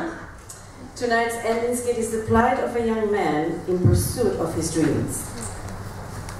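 A woman speaks into a microphone through loudspeakers in a large echoing hall.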